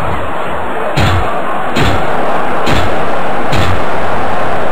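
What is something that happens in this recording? A weapon strikes a body with heavy thuds several times.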